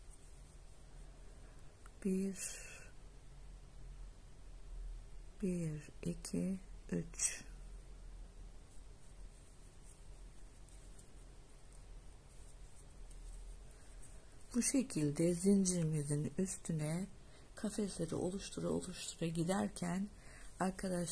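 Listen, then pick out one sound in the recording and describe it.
A crochet hook softly pulls yarn through loops.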